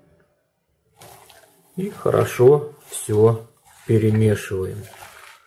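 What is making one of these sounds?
Hands toss and rustle sliced onions in a metal pot.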